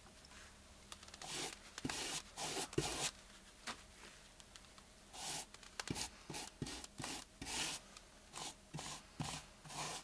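A brush scrapes and swishes across rough wood.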